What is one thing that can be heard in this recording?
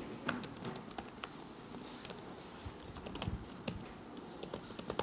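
Keys clatter as someone types quickly on a keyboard nearby.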